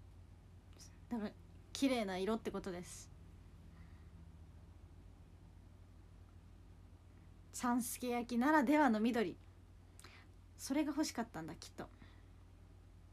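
A young woman talks softly and casually close to a microphone.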